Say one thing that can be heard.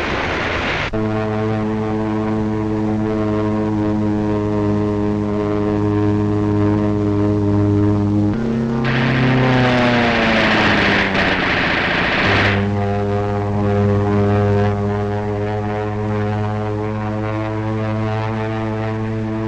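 A propeller plane engine drones steadily overhead.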